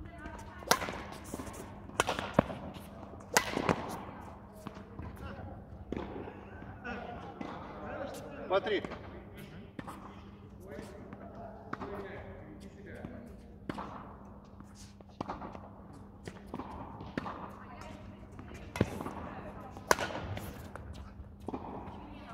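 Badminton rackets strike a shuttlecock back and forth in a large echoing hall.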